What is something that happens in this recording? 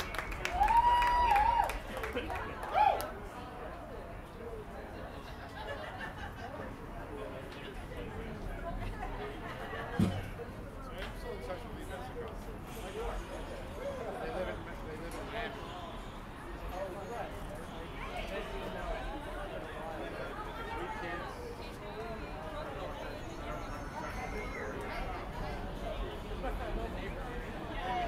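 A crowd of adults chatters nearby, outdoors.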